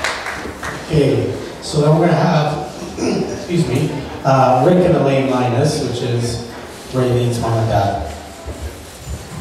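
A man speaks into a microphone, heard through loudspeakers in an echoing hall.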